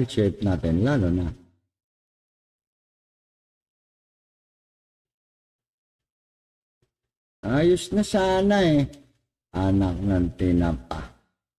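A middle-aged man speaks calmly into a headset microphone, in short bursts with pauses.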